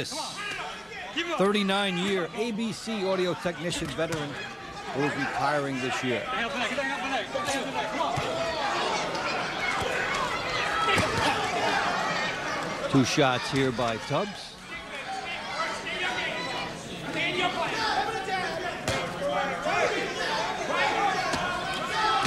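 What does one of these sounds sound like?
Gloves thud against a body as boxers trade punches.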